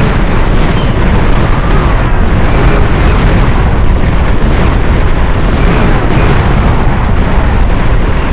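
Cannons boom in loud blasts.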